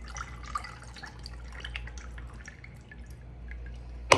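A drink pours from a can into a glass.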